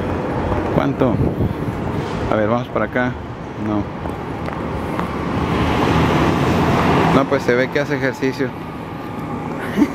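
Traffic rumbles steadily on a city street outdoors.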